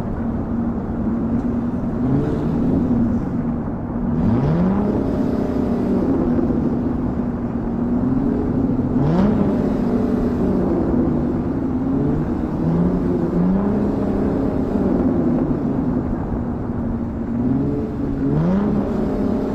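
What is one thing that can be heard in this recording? A truck engine rumbles and revs up and down, shifting gears.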